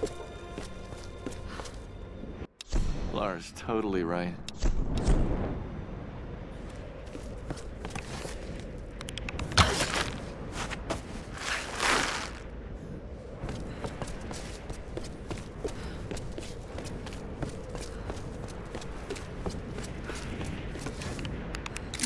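Footsteps thud on earth.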